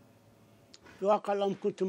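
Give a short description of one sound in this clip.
A man speaks through a remote link.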